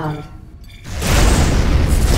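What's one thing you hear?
Explosions boom loudly and rumble.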